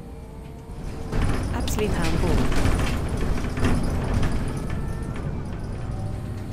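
A bus rumbles loudly over the road around a bend.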